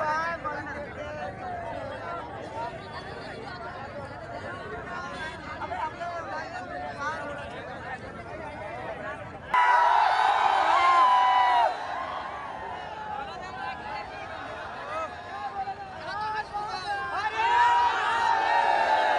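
A large outdoor crowd of young men shouts and cheers loudly.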